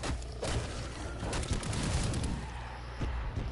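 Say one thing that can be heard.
An explosion bursts with a loud crackling roar.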